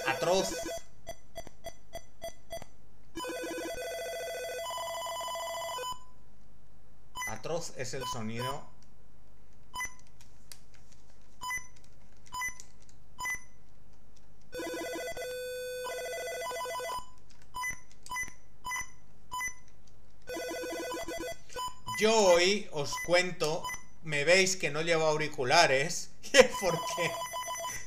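Retro video game beeps and buzzing tones play in short bursts.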